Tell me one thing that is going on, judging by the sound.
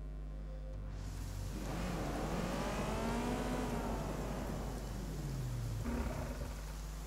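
A car engine hums and revs as a car drives.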